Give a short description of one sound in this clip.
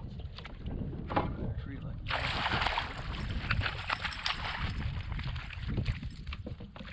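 A fish splashes and thrashes at the water's surface.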